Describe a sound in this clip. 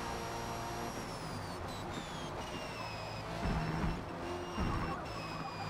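A racing car engine drops in pitch as the car slows down.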